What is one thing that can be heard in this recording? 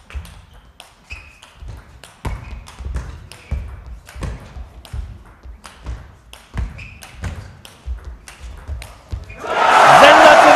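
A table tennis ball is struck back and forth with paddles.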